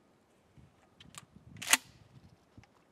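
A shotgun's pump action clacks.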